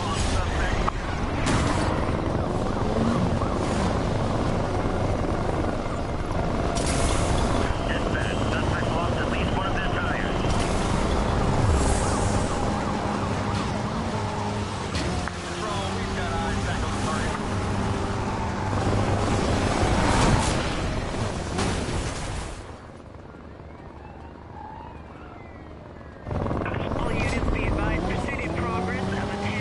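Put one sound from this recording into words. A car engine roars loudly at high speed.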